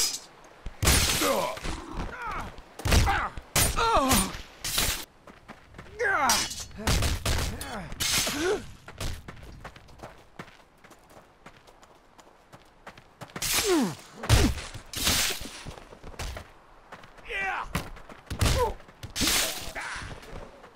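Weapons strike bodies with heavy, wet thuds.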